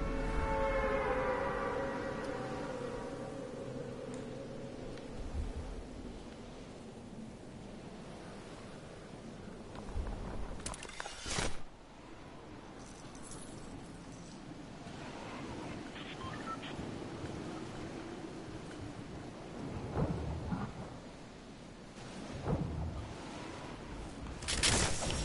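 Wind rushes steadily past during a fast glide.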